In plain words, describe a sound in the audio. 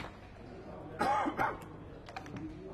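Dice rattle in a cup.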